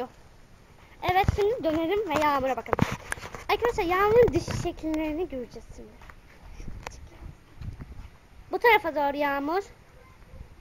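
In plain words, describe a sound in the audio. A child calls out and talks loudly.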